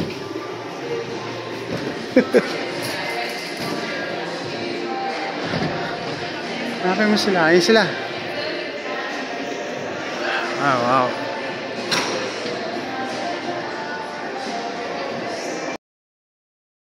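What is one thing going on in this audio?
A hubbub of voices echoes through a large hall.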